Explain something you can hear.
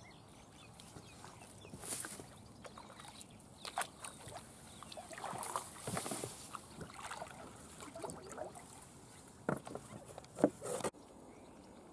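Reeds rustle and brush against a kayak.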